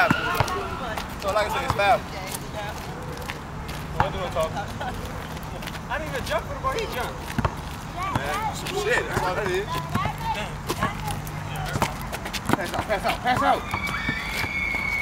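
Young men talk and call out nearby outdoors.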